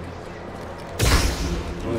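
A burst of energy crackles and whooshes.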